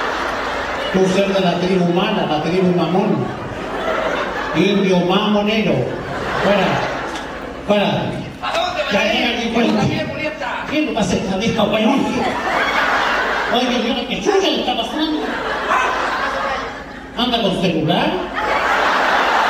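An elderly man talks loudly and animatedly through a microphone in a large echoing space.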